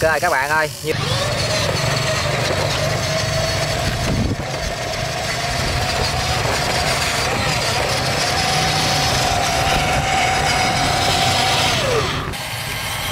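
A small electric motor whines steadily as a toy truck drives.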